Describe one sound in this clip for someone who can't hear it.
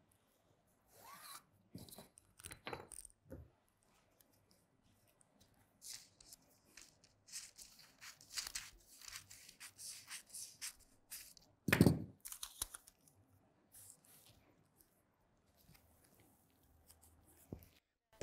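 Paper rustles and slides against a table.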